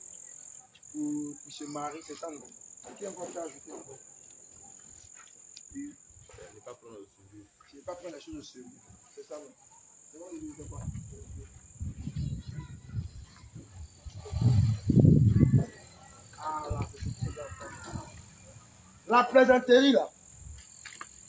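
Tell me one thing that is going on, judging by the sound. A man speaks aloud nearby, reading out to a gathering.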